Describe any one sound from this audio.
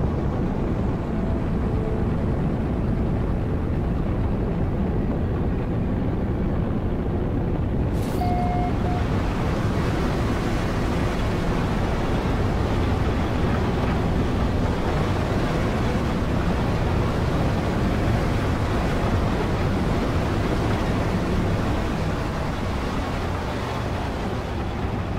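A spaceship engine roars with a steady low rumble.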